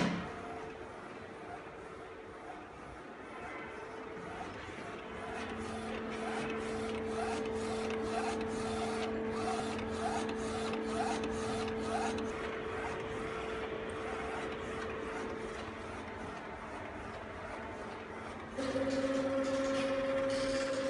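A printer hums and whirs steadily as it runs.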